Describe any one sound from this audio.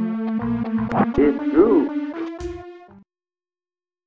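A bright electronic game tune plays briefly and stops.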